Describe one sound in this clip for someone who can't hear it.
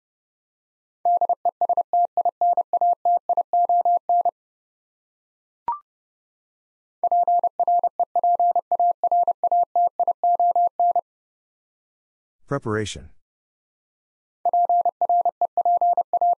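Morse code beeps in quick, steady bursts of a single high tone.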